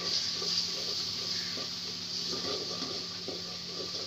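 A wooden spoon scrapes and stirs in a metal pan.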